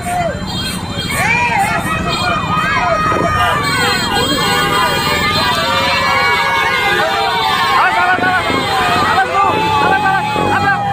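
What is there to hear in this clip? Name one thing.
A crowd of women cheers and shouts outdoors.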